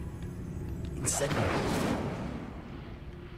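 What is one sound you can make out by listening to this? A magic spell bursts with a crackling whoosh.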